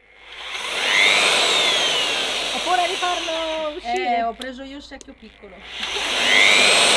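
An electric mixer drill whirs loudly, dips away, then revs up again.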